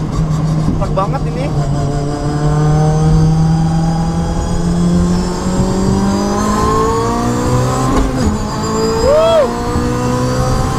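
A car engine revs hard and climbs in pitch as the car speeds up, dropping briefly at each gear change.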